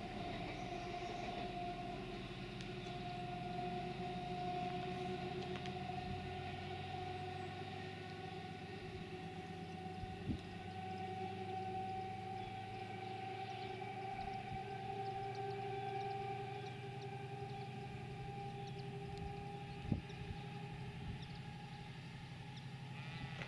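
Train wheels clatter over the rails.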